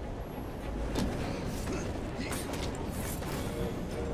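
Blows land with dull thuds.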